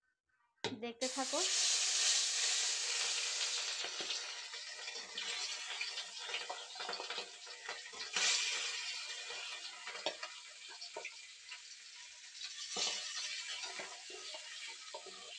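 Food sizzles loudly as it fries in hot oil.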